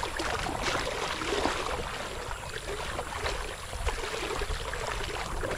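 A dog pants quickly.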